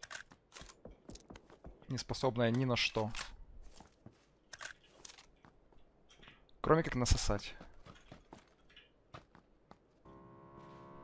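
Footsteps crunch quickly on gravel.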